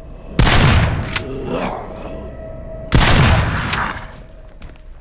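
A gun fires two loud shots that echo in a room.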